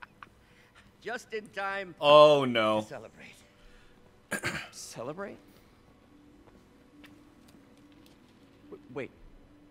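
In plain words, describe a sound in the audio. A middle-aged man speaks cheerfully.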